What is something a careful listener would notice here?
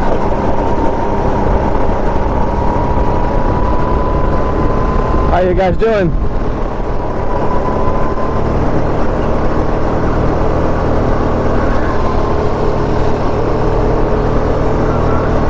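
A go-kart engine buzzes loudly and steadily up close.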